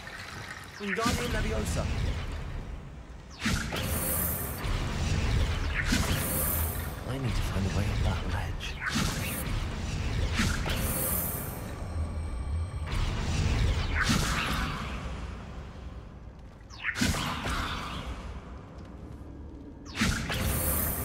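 Magic spells crackle and burst in sharp blasts.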